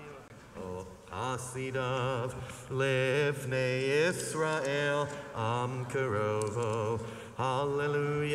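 A congregation sings together loudly.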